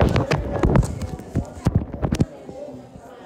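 Something brushes and knocks against the microphone.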